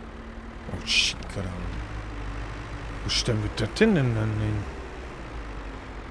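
A tractor engine idles with a low steady rumble.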